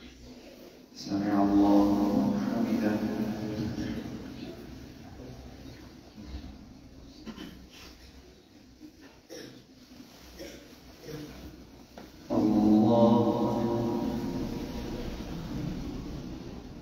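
A man chants loudly through a microphone, echoing in a large hall.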